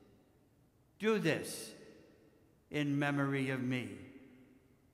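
An elderly man chants two short phrases aloud, with a brief echo after each.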